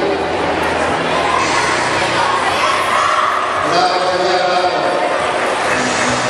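Young children cheer and shout together.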